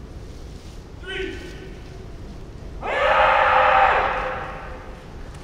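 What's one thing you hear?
Kendo fighters let out long, loud shouts in a large echoing hall.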